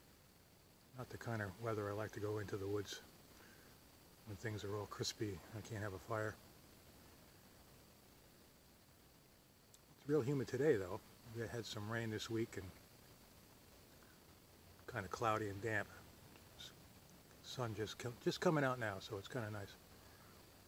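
An older man speaks calmly, close to the microphone.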